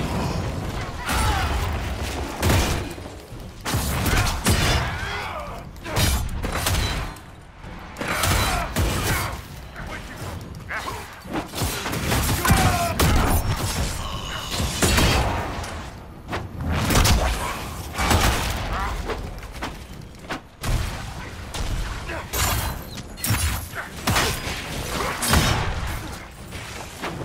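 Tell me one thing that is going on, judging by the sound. Magic blasts and explosions boom and crackle in quick bursts.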